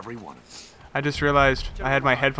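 A man answers in a rough voice.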